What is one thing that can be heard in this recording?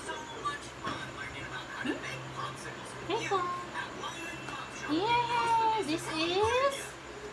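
A small girl speaks in a high voice close by.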